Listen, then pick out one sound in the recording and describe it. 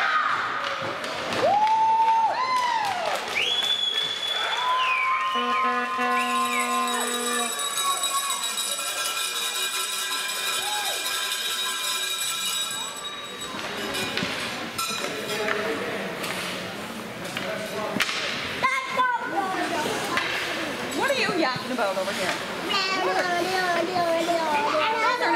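Skate blades scrape across ice.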